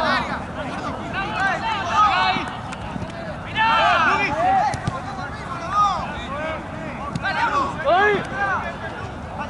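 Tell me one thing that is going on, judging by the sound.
Young men shout to each other across an open outdoor pitch.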